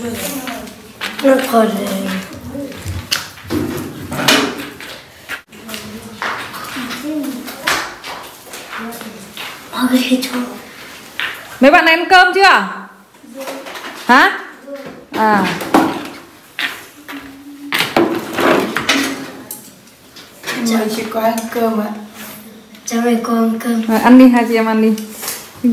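A young girl talks calmly and close by.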